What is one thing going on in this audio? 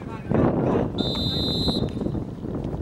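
A referee's whistle blows once, sharp and short.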